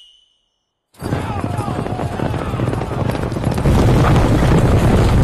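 Many horses gallop, hooves thudding on grass.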